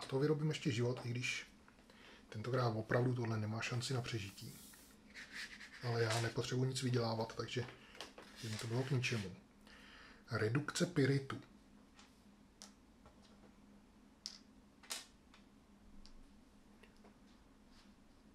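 Game cards and pieces tap and slide softly on a table.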